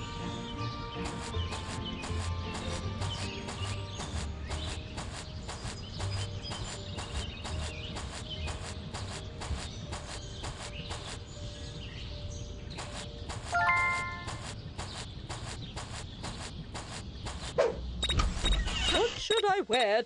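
Footsteps tap quickly and steadily.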